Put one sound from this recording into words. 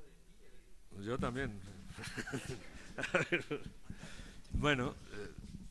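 An older man laughs into a microphone.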